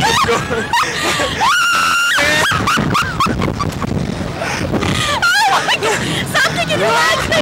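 A young woman screams and laughs up close.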